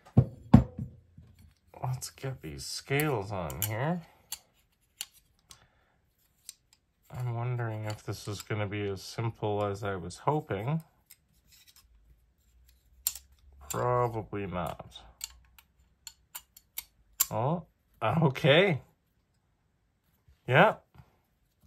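A folding knife clicks and taps as it is handled.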